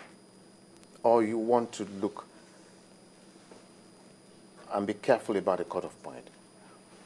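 A middle-aged man speaks calmly and thoughtfully into a microphone.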